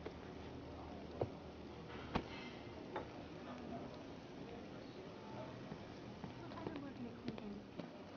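A woman's heels click on a hard floor as she walks closer.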